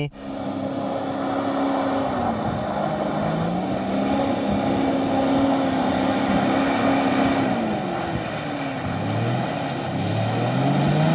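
An engine revs hard and strains, rising and falling in pitch.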